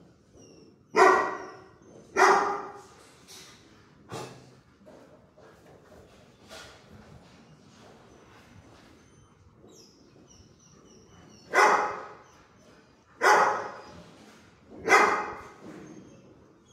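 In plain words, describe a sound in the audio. A dog barks loudly in an echoing room.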